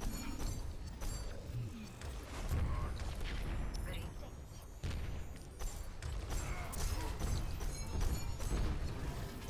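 Game weapons fire in rapid bursts with sharp blasts.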